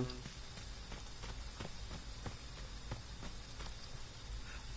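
Footsteps thud quickly on soft forest ground.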